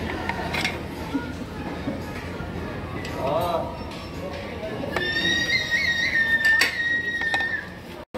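A metal spoon scrapes and clinks against a ceramic dish.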